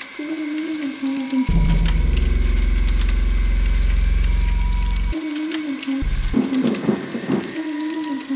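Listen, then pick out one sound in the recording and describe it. Dry leaves crunch underfoot as a person walks slowly.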